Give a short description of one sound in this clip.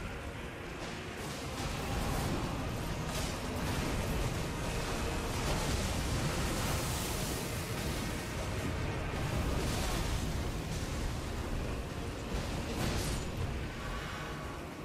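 Magic blasts and clashing sounds ring out in a fight.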